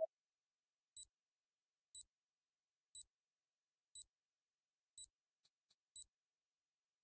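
Short electronic beeps sound once a second as a game counts down.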